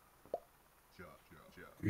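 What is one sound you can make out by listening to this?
A man speaks briefly and calmly.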